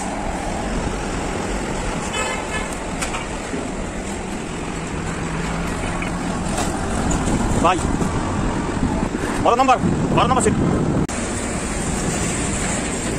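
A truck engine rumbles nearby.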